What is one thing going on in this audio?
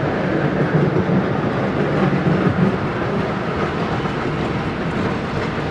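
A tram rumbles past along its rails close by.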